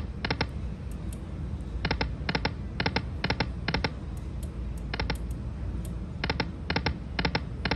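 A slot machine's reels stop with quick, repeated triple chimes.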